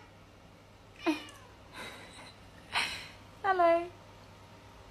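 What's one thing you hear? A cat meows several times nearby.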